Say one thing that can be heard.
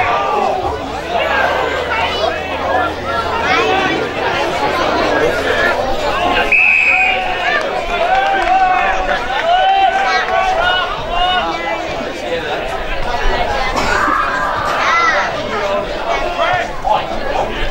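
A crowd of spectators calls out and cheers nearby.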